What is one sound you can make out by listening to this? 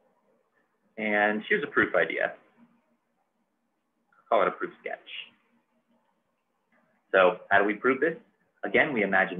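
A man speaks calmly into a nearby microphone, explaining in short bursts.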